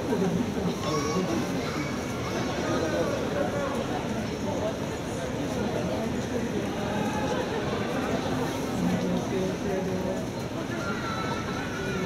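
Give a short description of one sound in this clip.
A large indoor crowd murmurs and chatters in an echoing hall.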